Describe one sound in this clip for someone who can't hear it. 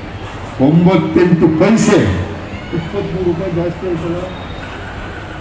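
An elderly man speaks loudly through a microphone and loudspeakers outdoors.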